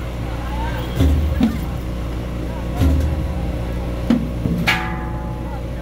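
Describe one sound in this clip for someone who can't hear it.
Loud bangs go off now and then outdoors.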